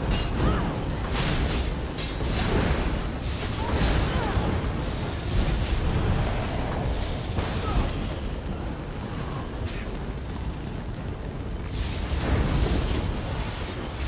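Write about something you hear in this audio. Magic spells crackle and burst in a fierce battle.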